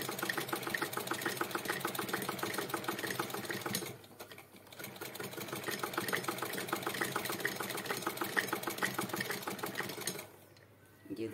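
A sewing machine clatters rapidly and steadily, pausing briefly.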